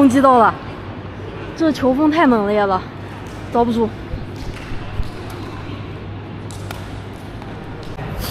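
A shuttlecock is struck by rackets in a large echoing hall.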